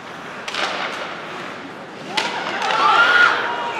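Hockey sticks clack against a puck on ice in a large echoing hall.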